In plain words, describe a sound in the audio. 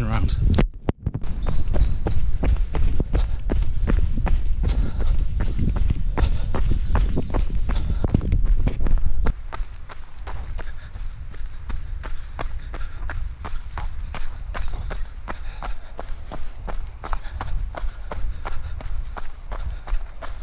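Running footsteps crunch steadily on a dirt trail.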